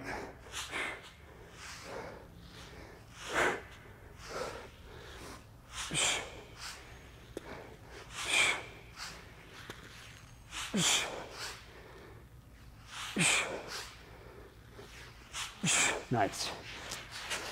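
A man breathes out hard with each lift.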